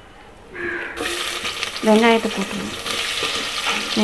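Sliced onions drop into hot oil and sizzle loudly.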